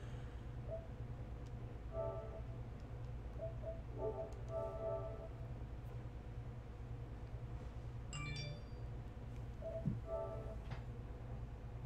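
Short electronic menu chimes sound now and then.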